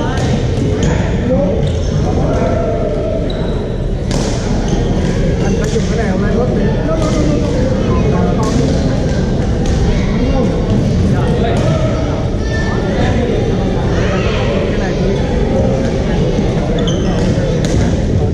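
Paddles pop against a plastic ball in quick rallies.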